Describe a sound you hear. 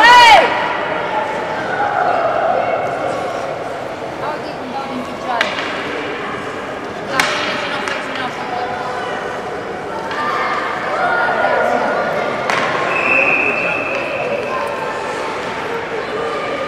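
Children call out across an echoing rink.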